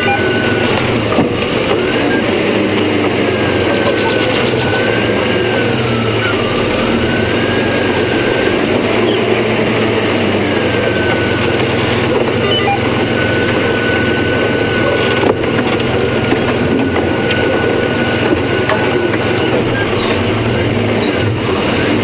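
A vehicle engine rumbles steadily as it drives over a rough dirt track.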